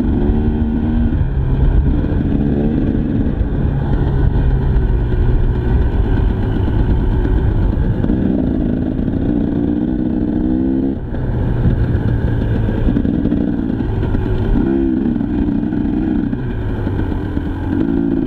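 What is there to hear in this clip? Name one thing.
A dirt bike engine revs up and drops back again and again.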